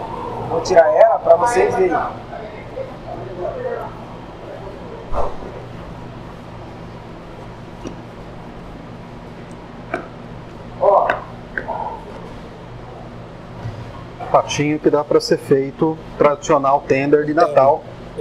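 A knife slices through raw meat.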